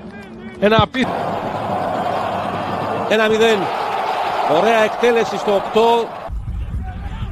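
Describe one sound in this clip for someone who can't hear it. A crowd roars and cheers in a large stadium.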